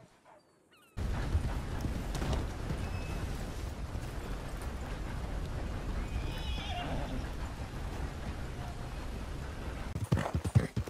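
Horse hooves thud on a dirt road.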